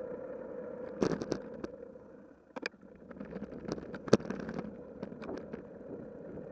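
Bicycle parts rattle and clatter over bumps.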